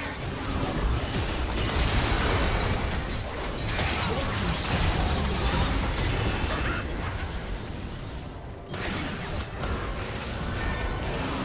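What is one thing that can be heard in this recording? Magic spells crackle and burst in a battle.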